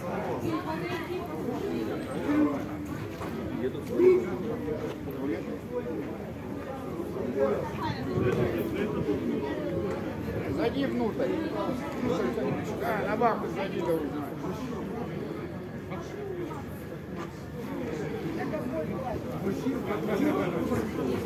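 A crowd of men and women talk outdoors, nearby and all at once.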